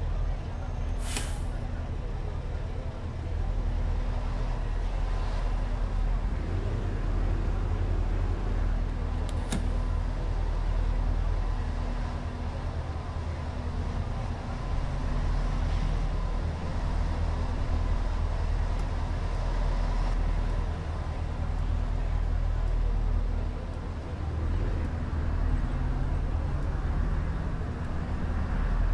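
A bus engine rumbles low and steady, rising and falling as the bus drives.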